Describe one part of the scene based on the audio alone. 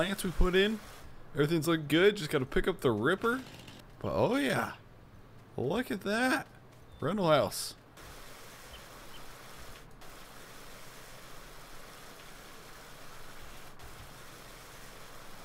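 Water hisses as it sprays from a garden hose.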